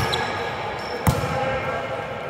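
A volleyball is hit with a sharp slap in a large echoing gym.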